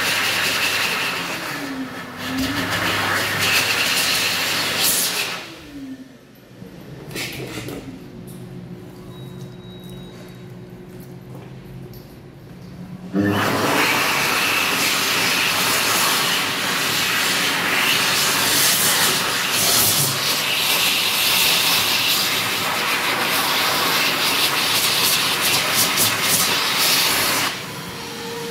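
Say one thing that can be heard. A hand dryer blows loudly with a strong roar.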